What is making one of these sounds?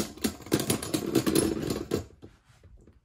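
Spinning tops clash and clatter rapidly against each other.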